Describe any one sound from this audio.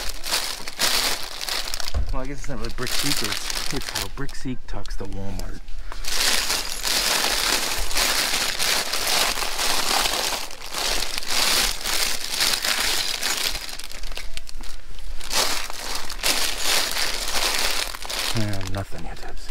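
Plastic toy packages rustle and crinkle as a hand rummages through them.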